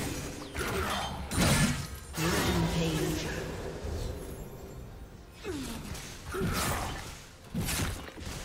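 Magic spells burst and whoosh in quick bursts.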